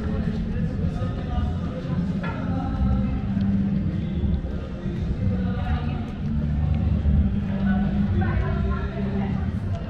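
Men and women chat faintly at a distance outdoors.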